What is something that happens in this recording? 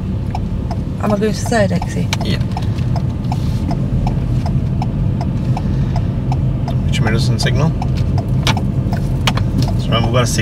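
A man speaks calmly inside the car.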